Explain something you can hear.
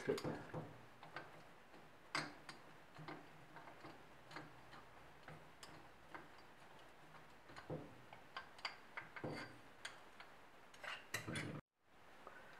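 Small metal parts click and tap together close by.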